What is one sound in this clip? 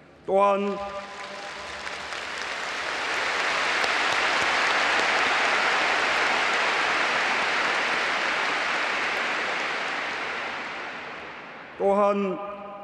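A huge crowd applauds, swelling and then fading.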